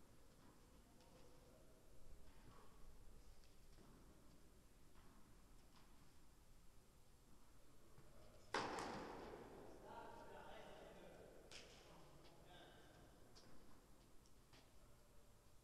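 A tennis ball thuds off rackets in a large echoing hall.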